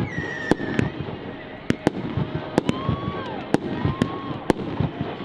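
Fireworks crackle and sizzle in the sky.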